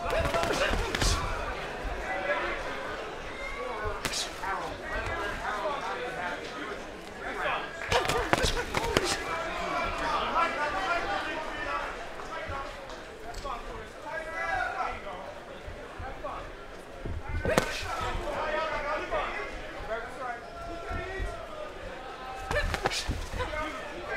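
Gloved punches land with sharp thuds.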